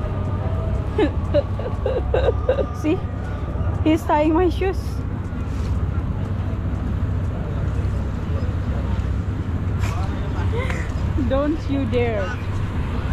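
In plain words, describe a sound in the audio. A young woman talks close to the microphone.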